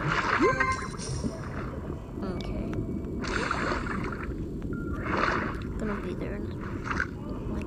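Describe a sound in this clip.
Water rumbles and bubbles in a deep underwater hum.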